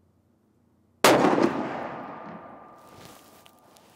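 A rifle fires a single loud shot that echoes outdoors.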